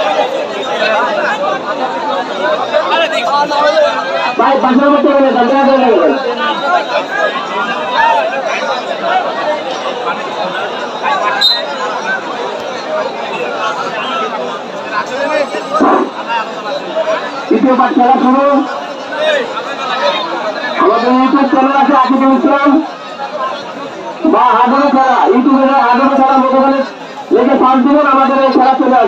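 A crowd chatters and murmurs outdoors throughout.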